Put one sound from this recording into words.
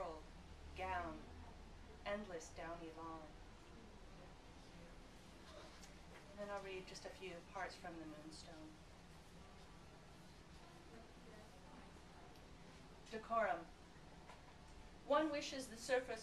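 A woman reads aloud calmly into a microphone, with pauses.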